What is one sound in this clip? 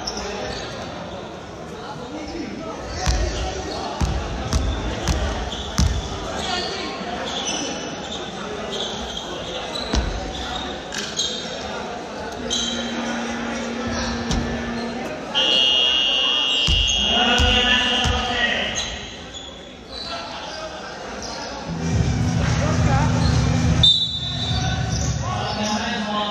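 Many people chatter and shout in a large echoing hall.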